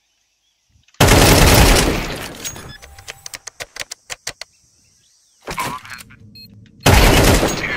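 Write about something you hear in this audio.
Gunshots ring out from a video game.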